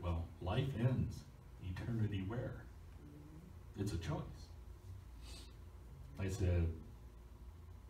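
An elderly man speaks calmly in short phrases.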